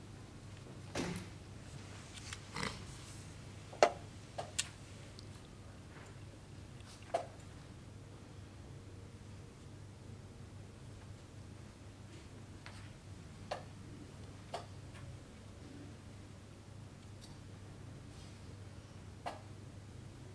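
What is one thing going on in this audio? A chess piece is set down on a wooden board with a soft knock.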